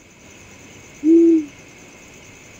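An owl hoots once.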